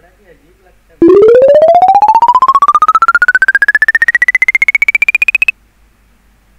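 A game's score tally ticks up with a rapidly rising electronic tone.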